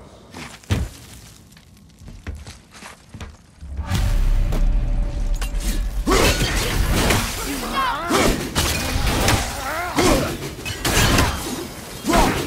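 A heavy axe whooshes through the air.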